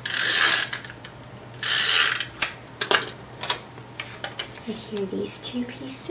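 A tape dispenser clicks and rolls across paper.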